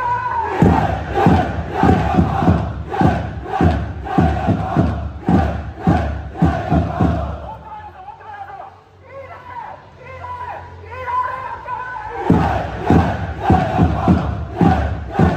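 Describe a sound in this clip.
A large crowd chants loudly in rhythm outdoors.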